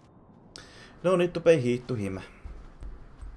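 A man speaks briefly with animation, close to a microphone.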